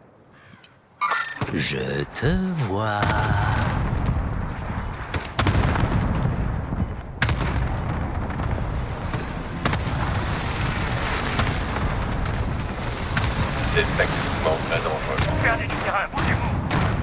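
A helicopter's rotor roars and thuds.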